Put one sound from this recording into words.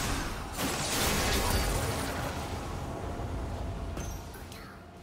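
Magic blasts and hits burst in quick succession.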